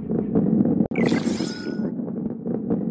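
A bright chime rings.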